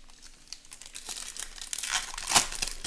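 A foil pack crinkles as hands tear it open.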